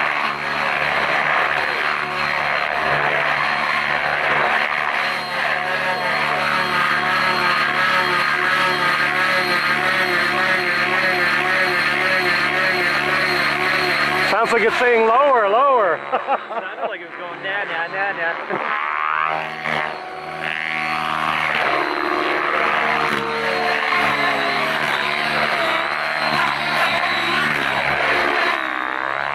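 A model helicopter's motor whines and its rotor buzzes, rising and falling in pitch as it flies close by.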